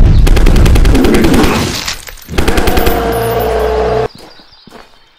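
A rapid-fire gun shoots in quick, loud bursts.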